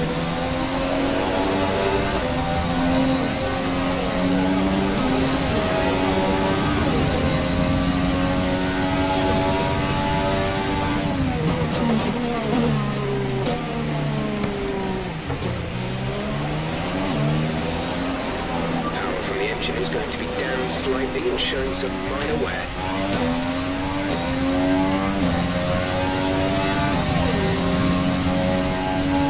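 A racing car engine roars at high revs, dropping in pitch as it slows down and then climbing again through the gears.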